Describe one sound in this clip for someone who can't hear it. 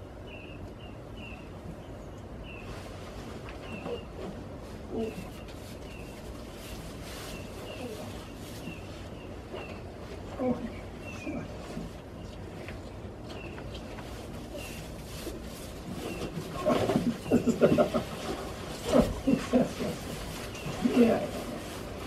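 Straw rustles as goats shuffle about.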